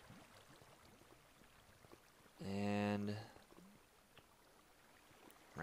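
Water flows and trickles softly.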